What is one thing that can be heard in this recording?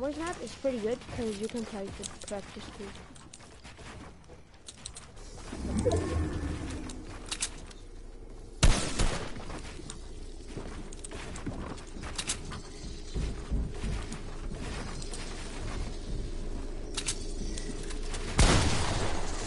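Quick clicks and thuds of building pieces snapping into place in a video game.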